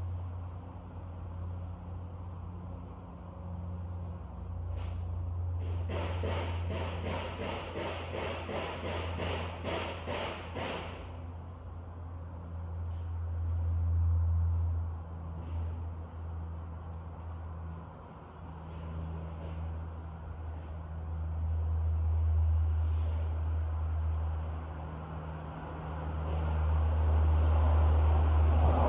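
Wind blows outdoors and rustles tree leaves in gusts.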